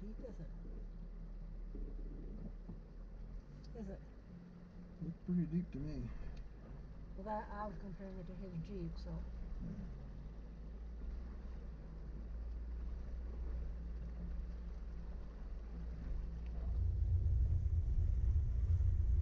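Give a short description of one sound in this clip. Tyres crunch and rumble over a rocky track.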